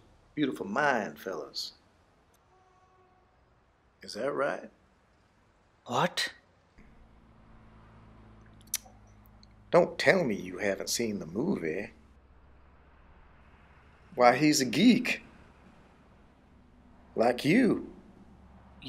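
An older man speaks calmly.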